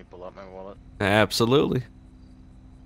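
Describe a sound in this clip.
Another man answers loudly through a microphone.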